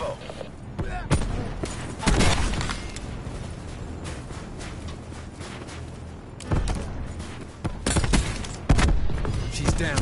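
Rapid gunshots fire in short bursts.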